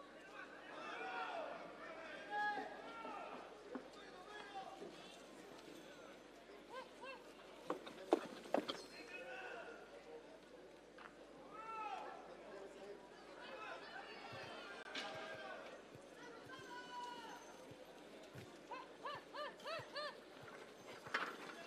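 Horses gallop with hooves thudding on soft dirt.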